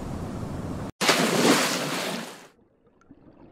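Water splashes as a diver plunges in.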